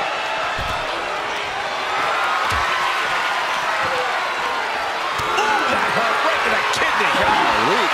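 Bodies thud heavily against a hard surface.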